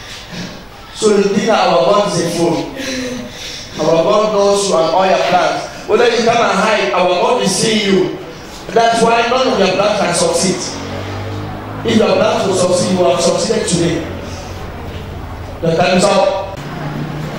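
A man speaks loudly and with animation through a microphone in an echoing hall.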